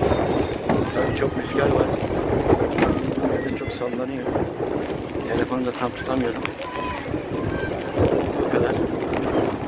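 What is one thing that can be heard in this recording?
Players shout and call to each other across an open outdoor pitch.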